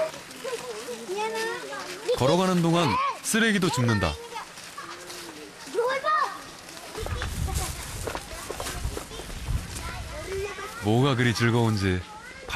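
Children chatter and call out close by.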